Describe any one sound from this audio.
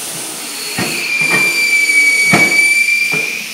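A tyre changing machine whirs with a steady high whine.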